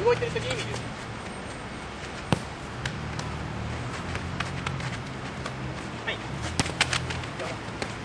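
A football is kicked with a dull thud outdoors.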